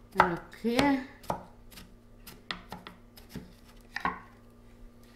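A knife chops on a wooden cutting board with sharp knocks.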